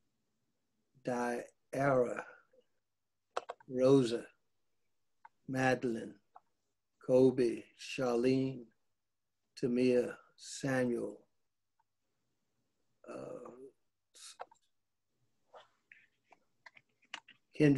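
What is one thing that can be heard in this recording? An elderly man speaks slowly, with long pauses.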